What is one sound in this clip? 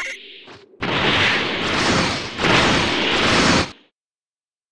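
An energy blast whooshes and crackles loudly.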